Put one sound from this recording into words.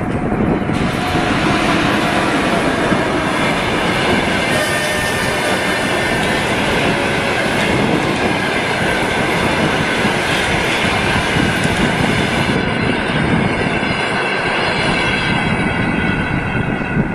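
A passenger train rumbles and clatters along the tracks close by.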